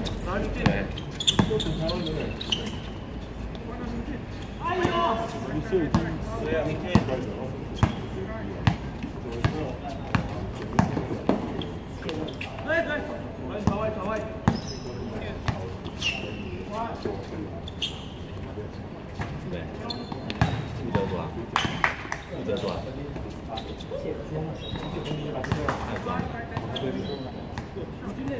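Sneakers squeak on the court.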